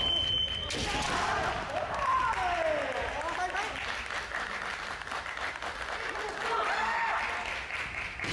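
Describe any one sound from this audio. Fencers shout loud, drawn-out cries in a large echoing hall.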